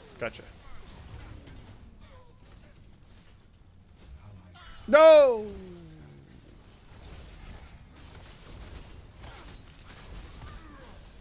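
Video game combat effects whoosh and blast, with a loud pitched blast that sweeps down.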